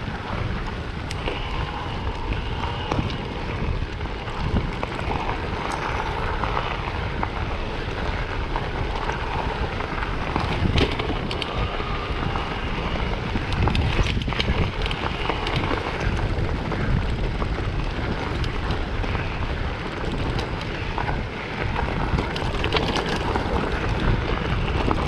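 Wind rushes loudly past, rumbling low throughout.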